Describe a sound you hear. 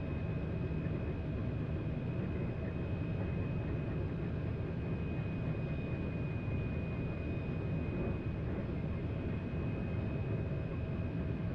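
A high-speed electric train rumbles steadily along the track with a constant high whine.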